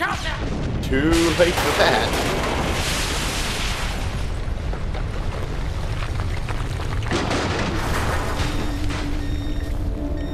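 A huge explosion booms and roars with a long rumble.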